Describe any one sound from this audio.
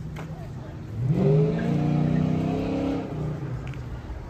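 A car engine starts up and revs nearby.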